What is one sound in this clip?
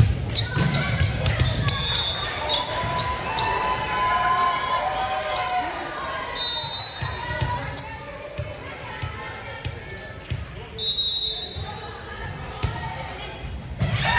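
Volleyball players call out and shout to each other in a large echoing gym.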